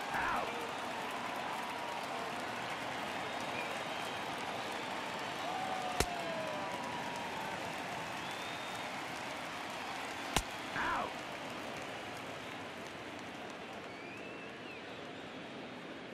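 A stadium crowd murmurs.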